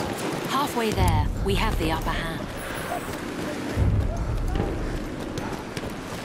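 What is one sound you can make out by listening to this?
Explosions boom nearby with a deep rumble.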